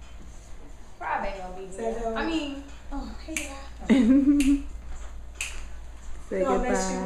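Young women talk and laugh close by with animation.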